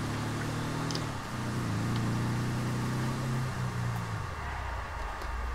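A small vehicle's engine hums steadily as it drives along.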